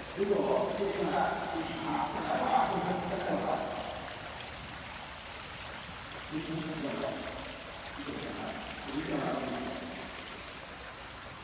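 A small fountain splashes steadily into a pool.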